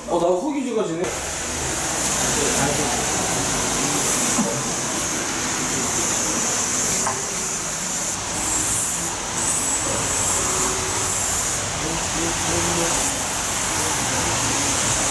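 Traffic hisses by on a wet street outdoors.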